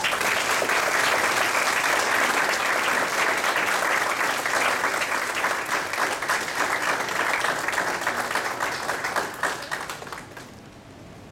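An audience applauds loudly in a large room, then the clapping dies away.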